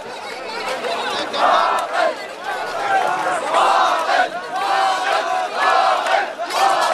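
A large crowd of men chants loudly in unison outdoors.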